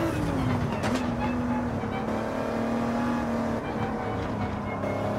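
A twin-turbo V6 race car engine roars at high revs, heard from inside the cockpit.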